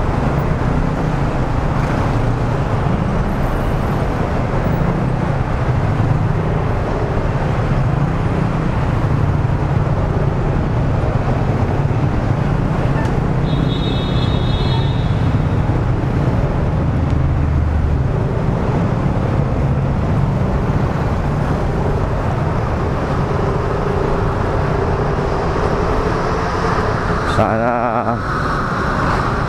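A motorcycle engine idles and rumbles close by.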